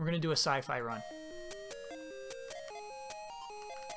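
Beeping video game music plays.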